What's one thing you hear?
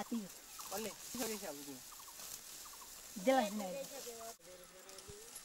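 A sickle cuts through dry grain stalks.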